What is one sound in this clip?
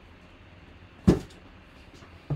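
A cardboard box is set down on a table with a thud.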